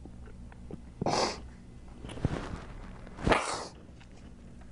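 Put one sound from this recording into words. A man sighs and sobs heavily.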